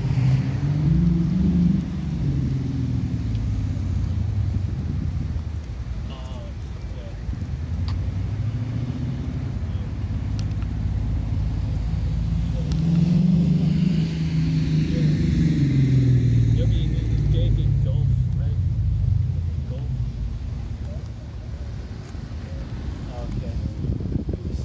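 Tyres roll steadily along a paved road.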